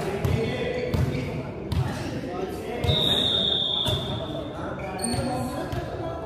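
A volleyball is struck with dull thuds that echo through a large hall.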